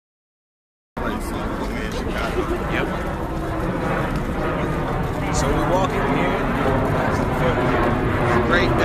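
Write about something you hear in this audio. A young man talks close to a phone microphone.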